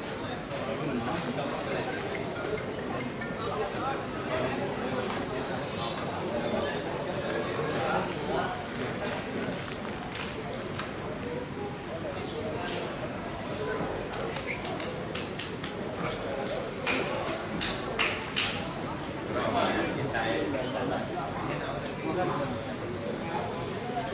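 A crowd murmurs and chatters throughout, outdoors in a large open space.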